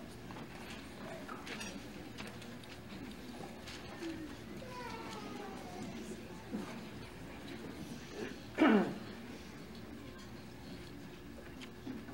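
An audience murmurs softly in a hall.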